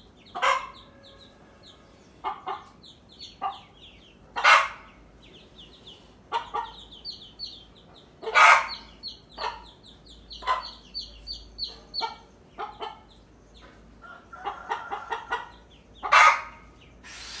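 A hen clucks loudly.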